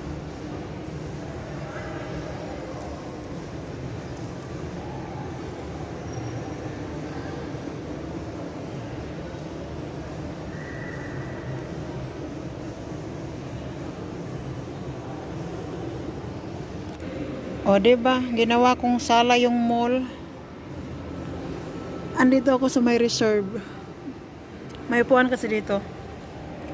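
People murmur faintly in a large, echoing hall.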